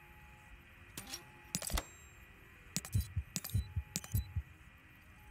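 Short interface clicks sound as a menu choice is made.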